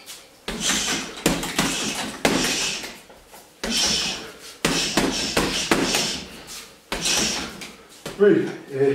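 Gloved punches thump against a heavy punching bag in quick bursts.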